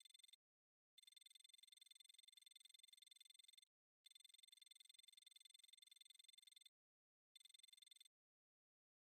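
Rapid electronic blips chatter in quick bursts.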